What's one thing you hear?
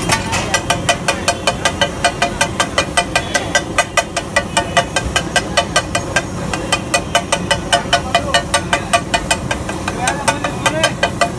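A metal spatula clanks rapidly and rhythmically against a hot griddle.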